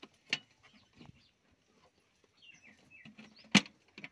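A hand taps on a thin metal box.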